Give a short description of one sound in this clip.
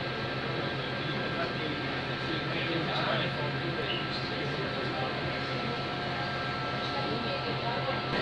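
A train rumbles and hums steadily, heard from inside a carriage.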